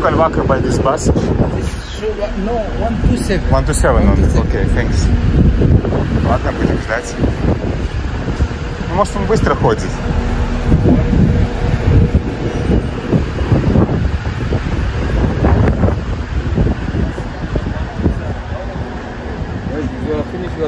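A young man talks close by, outdoors.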